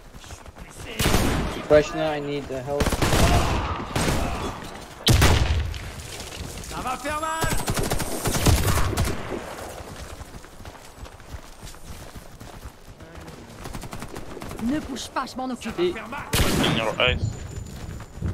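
Gunshots and explosions crack from a video game.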